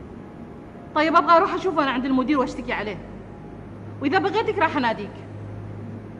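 A woman speaks firmly nearby.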